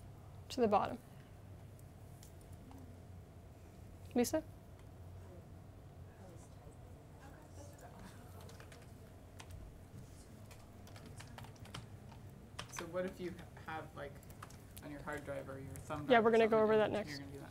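A young woman speaks to a small room, with pauses between phrases.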